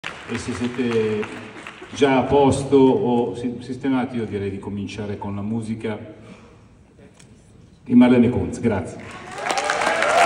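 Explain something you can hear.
A middle-aged man speaks calmly through a microphone and loudspeakers in a large echoing hall.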